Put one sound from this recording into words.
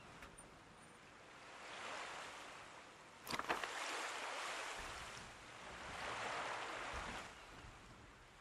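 Waves wash softly onto a shore, swelling and fading.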